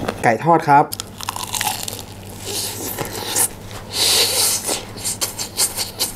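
A young man bites into crunchy fried chicken with a loud crunch.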